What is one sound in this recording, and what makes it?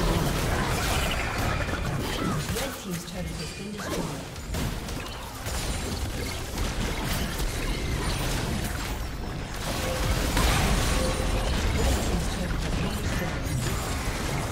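A turret crumbles with a loud crash.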